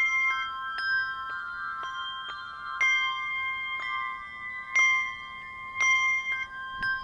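Handbells ring out a melody, each note struck and ringing on.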